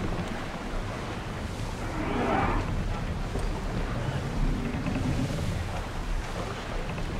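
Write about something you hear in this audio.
Waves wash and splash against a ship's hull.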